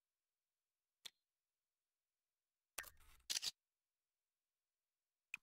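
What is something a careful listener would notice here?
A game's menu gives short, soft clicks.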